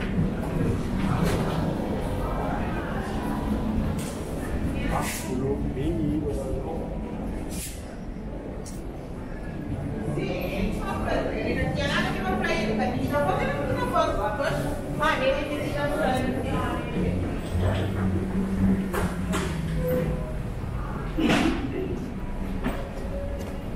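Suitcase wheels rumble over a hard floor.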